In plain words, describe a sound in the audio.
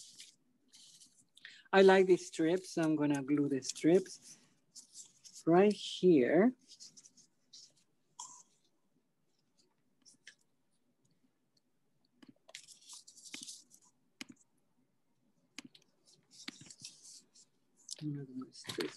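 Paper cards rustle and slide on a table.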